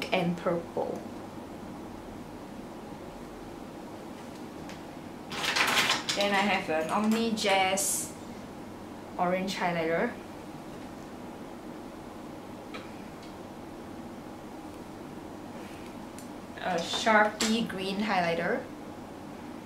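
A young woman talks close by, in short bursts with pauses.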